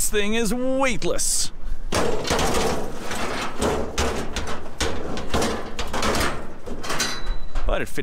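Metal grates clank and rattle against each other.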